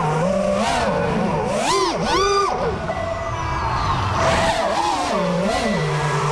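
Small drone motors whine loudly, revving up and down quickly.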